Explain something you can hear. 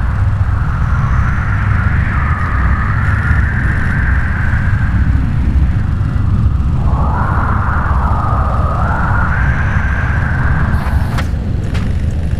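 A machine whirs steadily as it works.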